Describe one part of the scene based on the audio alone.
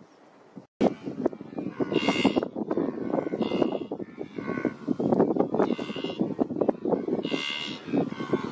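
A herd of wildebeest grunts and snorts nearby.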